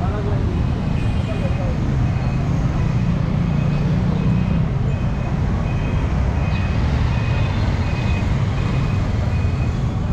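Motorbike engines hum and pass close by.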